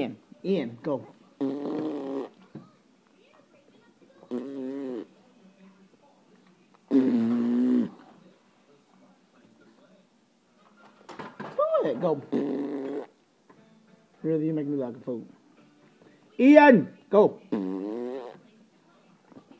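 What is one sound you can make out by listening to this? A baby babbles and squeals loudly close by.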